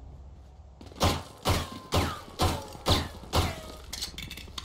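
A pistol fires a quick series of sharp shots.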